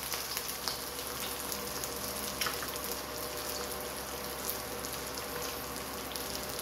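Food sizzles and crackles in a hot frying pan.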